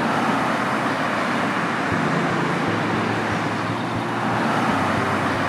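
Traffic roars steadily along a busy road.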